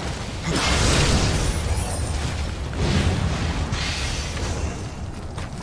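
Magic blasts burst and whoosh loudly in a fight.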